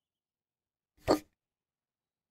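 A tablet is pulled out with a short, soft whoosh.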